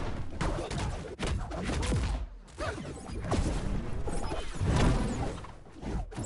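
Punches and kicks land with sharp, punchy thuds.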